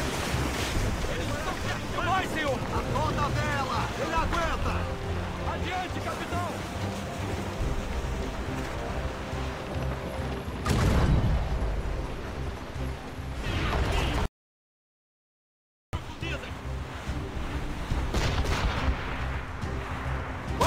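Waves wash and roar around a sailing ship.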